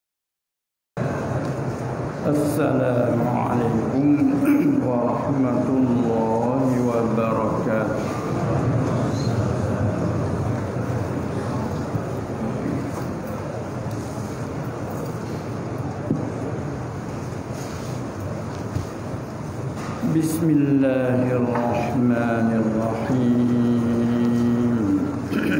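An elderly man speaks calmly into a microphone, heard through loudspeakers in an echoing hall.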